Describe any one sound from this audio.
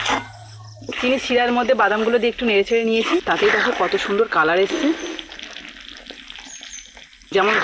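A woman talks calmly and warmly, close by.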